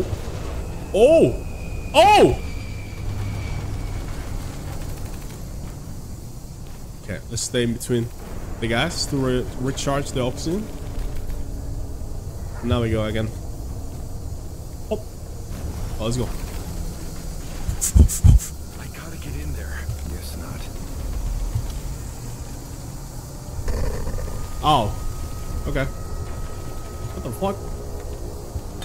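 A young man speaks calmly into a close microphone.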